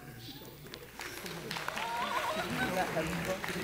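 An audience laughs and murmurs in a large hall.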